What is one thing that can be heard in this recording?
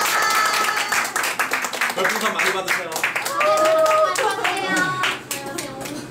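Young women cheer and sing together loudly.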